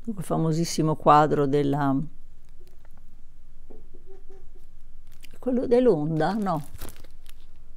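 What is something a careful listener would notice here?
An elderly woman speaks calmly and close to a microphone, with pauses.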